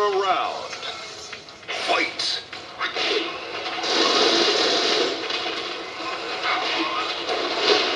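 Punches and kicks land with sharp thuds in a video game fight.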